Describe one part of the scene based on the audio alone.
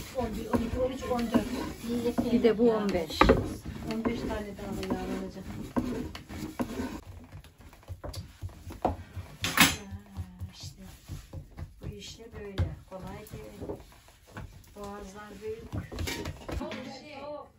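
A wooden rolling pin knocks and rolls over dough.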